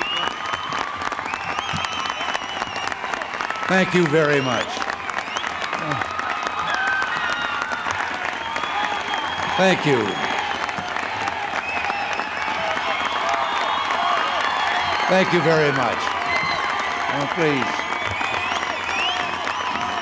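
A large crowd applauds steadily outdoors.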